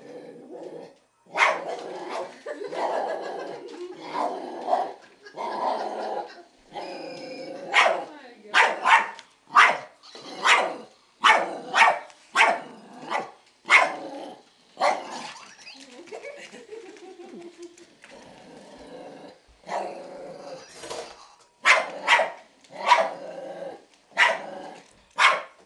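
A small dog's claws patter on a wooden floor.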